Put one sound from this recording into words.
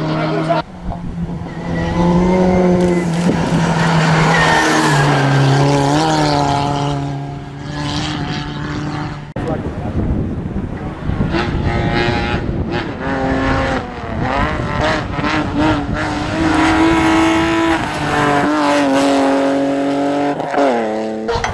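A rally car engine roars at high revs, rising and falling as the car speeds past.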